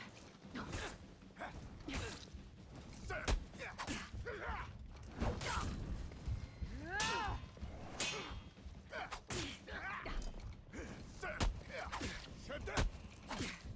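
Steel weapons clash and clang in a fight.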